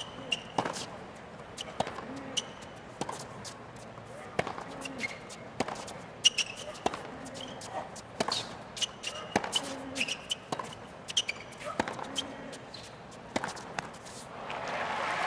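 A tennis ball is struck back and forth with sharp pops of the racquets.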